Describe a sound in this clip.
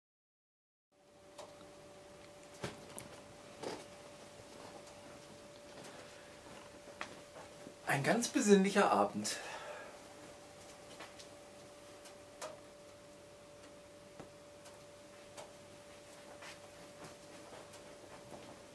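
A wood fire crackles and pops softly.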